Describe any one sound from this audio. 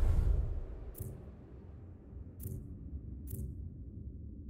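Short interface clicks sound a few times.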